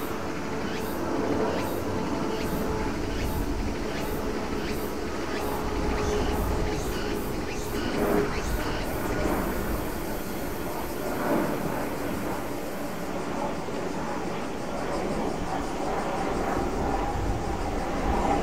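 A four-engine C-130J turboprop hums as it taxis far off across an airfield.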